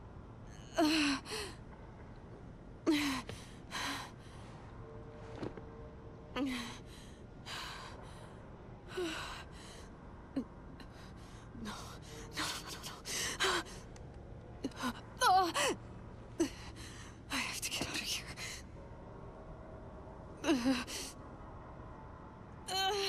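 A young woman speaks in distressed, breathy bursts close by.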